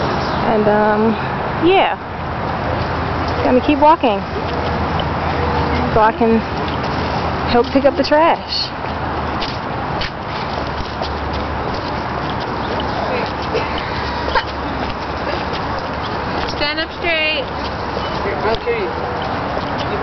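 Young men and women talk and call out to each other outdoors nearby.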